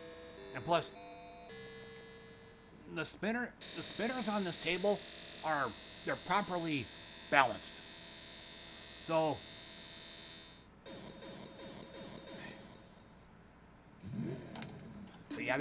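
Electronic pinball game tones and music play steadily.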